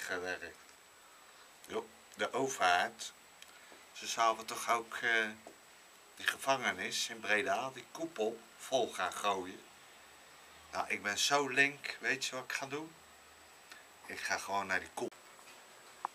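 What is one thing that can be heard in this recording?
A middle-aged man talks close up, with feeling.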